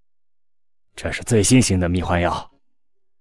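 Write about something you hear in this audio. A man speaks slyly in a low voice, close to a microphone.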